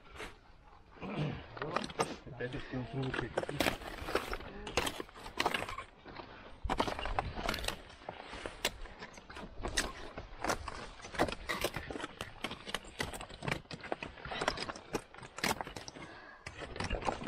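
Crampons scrape and clatter on rock.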